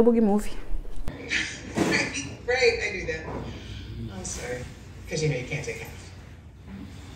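A woman speaks through a television speaker.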